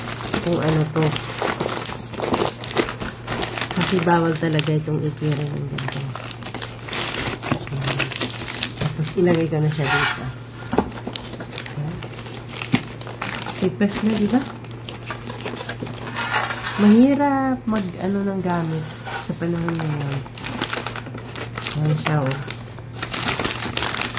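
A plastic bag crinkles and rustles up close.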